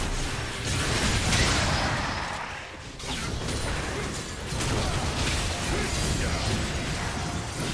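Magic blasts whoosh and crackle in a busy fight.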